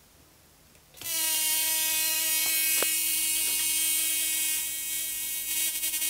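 A high-voltage coil buzzes loudly with a harsh electric hum.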